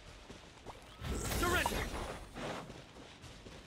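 A magic attack crackles and whooshes.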